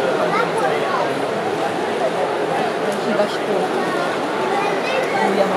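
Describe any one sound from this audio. A large crowd murmurs and chatters throughout, in a big echoing hall.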